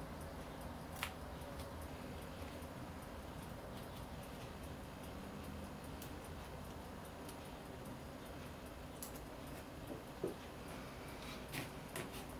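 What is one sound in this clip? Metal tweezers tap and click against a watch movement.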